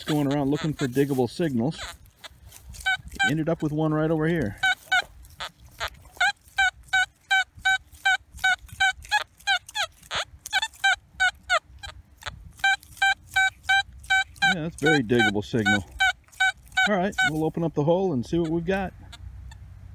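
A metal detector gives a wavering, buzzing tone.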